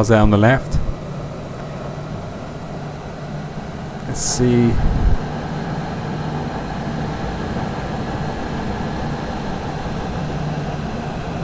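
A diesel train engine hums and rumbles steadily.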